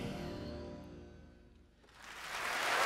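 An orchestra holds a final chord that fades away.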